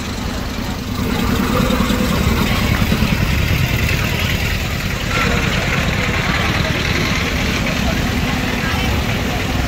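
Motorbike engines idle and putter nearby.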